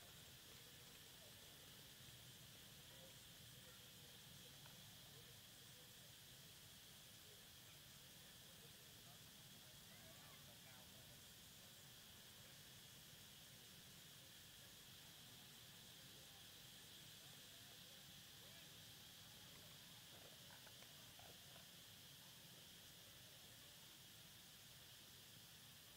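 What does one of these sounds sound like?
Young men talk and call out faintly at a distance outdoors.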